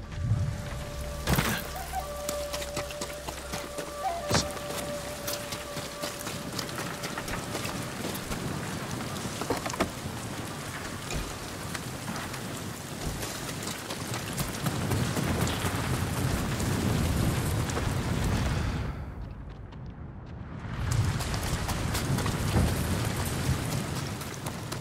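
Footsteps run over wet ground and grass.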